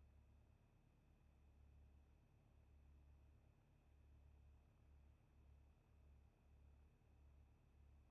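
A small plane's engine hums low and steadily.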